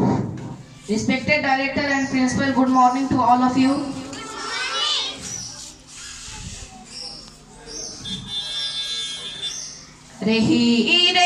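A young boy sings into a microphone, heard through loudspeakers outdoors.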